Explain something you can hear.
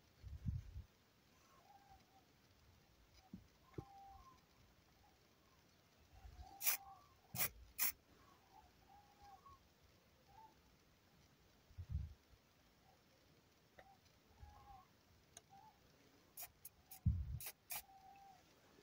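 A finger taps lightly on a small metal pot.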